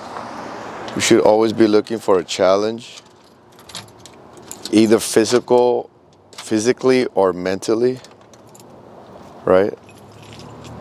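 A man talks calmly and close into a clip-on microphone, outdoors in light wind.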